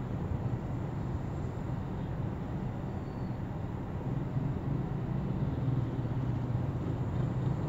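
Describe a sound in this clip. A motorcycle engine putters close by.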